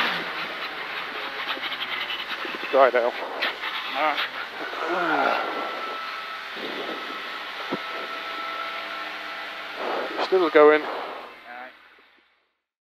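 A car engine roars and revs hard inside the cabin.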